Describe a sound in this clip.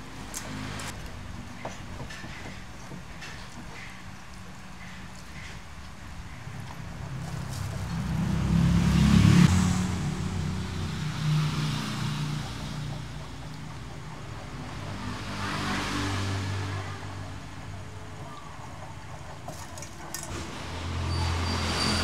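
A knife scrapes scales off a fish.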